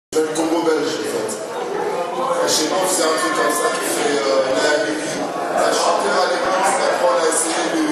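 A live band plays music in a large echoing room.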